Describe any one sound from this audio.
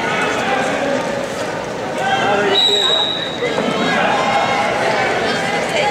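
A large crowd murmurs and chatters, echoing around a big indoor arena.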